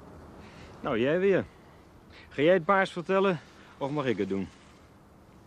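A second man answers calmly nearby.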